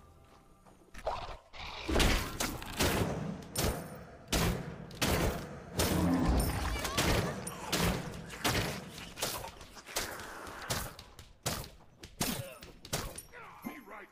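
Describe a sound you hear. Game sound effects of blows and spells hit in quick succession.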